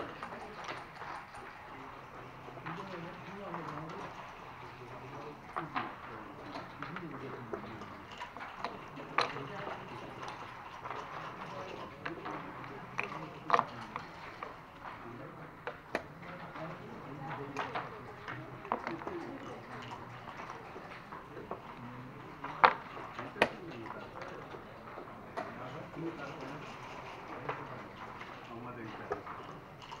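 Game pieces click and clack on a wooden board.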